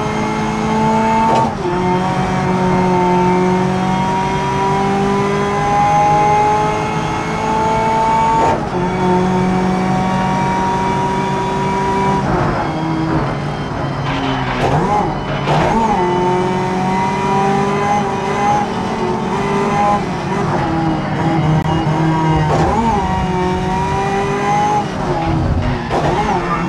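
A racing car engine roars and rises in pitch, dropping with each gear change.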